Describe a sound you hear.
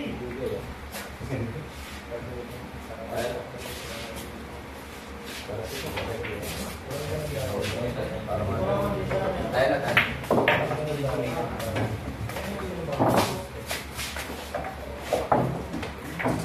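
A cue tip strikes a billiard ball.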